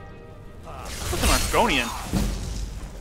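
A crackling electric spell sizzles loudly.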